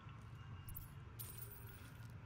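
A bright chime rings as an item is sold.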